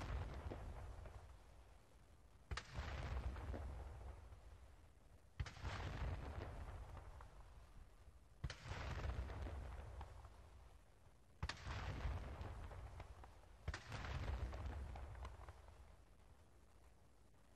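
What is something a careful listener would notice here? Cannons fire loud booming shots one after another, each rumbling and echoing away outdoors.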